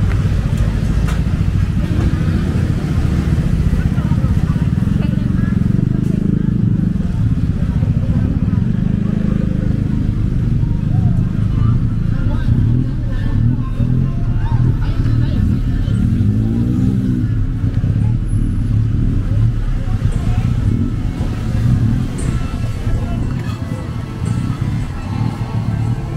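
Footsteps scuff along a pavement outdoors.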